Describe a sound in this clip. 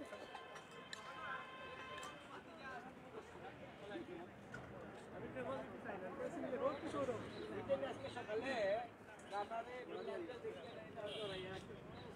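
Several men talk in a busy crowd nearby.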